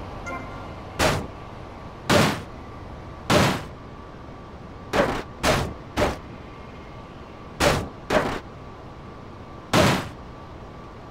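A hammer bangs loudly against a car's metal body.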